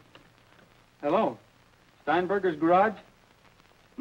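A young woman speaks into a telephone.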